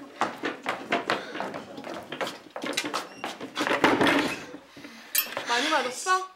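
A teenage girl speaks loudly.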